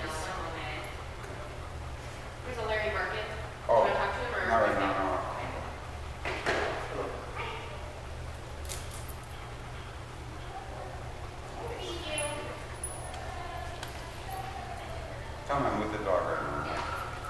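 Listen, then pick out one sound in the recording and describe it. A dog pants.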